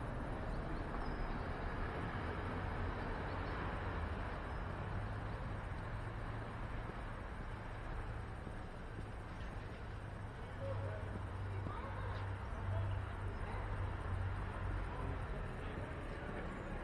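Bicycle tyres rumble steadily over a brick street.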